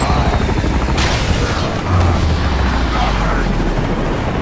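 A bullet whooshes through the air.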